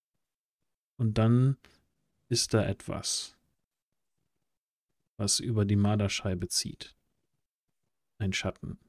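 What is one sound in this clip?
A man speaks with animation over an online call, in short bursts with pauses.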